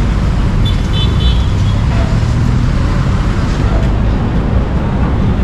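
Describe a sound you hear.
Motorcycle engines putter nearby.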